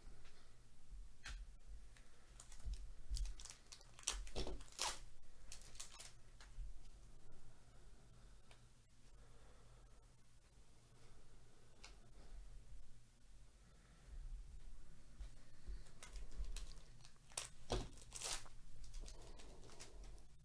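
Foil wrappers crinkle and tear as card packs are opened.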